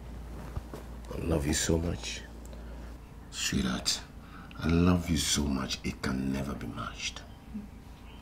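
An elderly man speaks in a low, earnest voice close by.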